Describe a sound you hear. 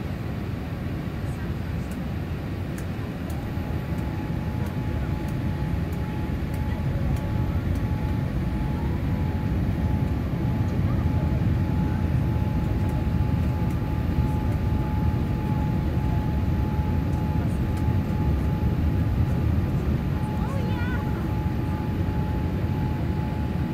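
A jet airliner's engines roar steadily in flight, heard from inside the cabin.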